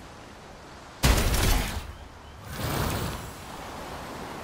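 A bright magical shimmer rings out.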